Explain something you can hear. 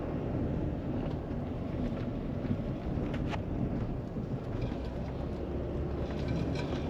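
Tyres roll over a rough road with light rattles.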